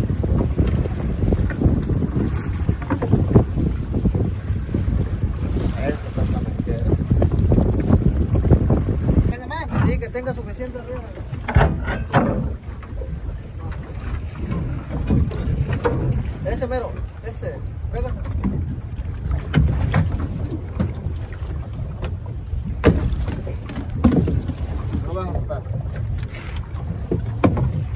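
Waves splash against the hull of a small boat.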